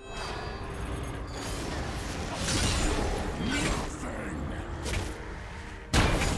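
Magic spells burst and crackle in quick succession.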